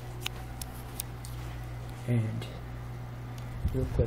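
A door handle turns and its latch clicks.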